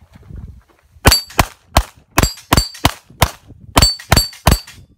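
A handgun fires rapid bursts of loud shots.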